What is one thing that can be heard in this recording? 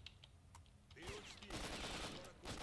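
A gun fires a burst of shots nearby.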